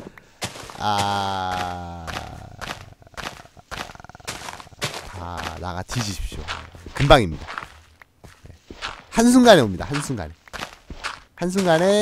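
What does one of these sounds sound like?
A shovel scrapes and digs into loose dirt.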